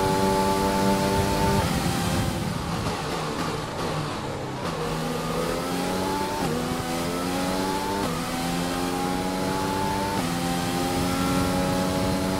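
Tyres hiss on a wet track.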